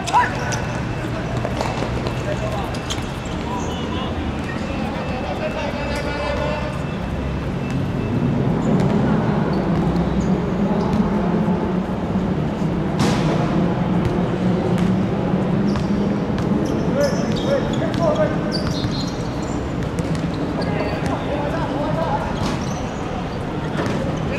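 Young men shout to each other across an open pitch outdoors.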